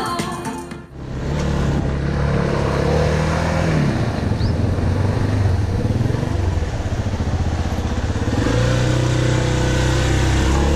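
A motorcycle engine hums and revs as it rides slowly.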